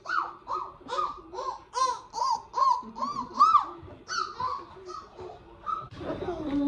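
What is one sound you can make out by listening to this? A young child squeals and shouts excitedly close by.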